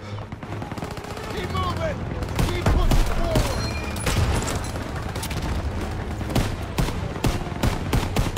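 Rifles fire in sharp, repeated shots.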